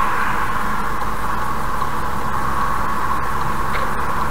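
A truck engine rumbles close ahead.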